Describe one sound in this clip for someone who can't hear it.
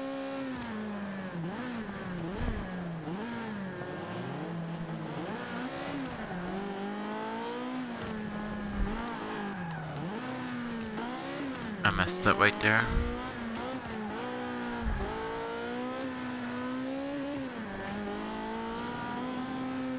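A racing car engine revs high and rises and falls as the gears shift.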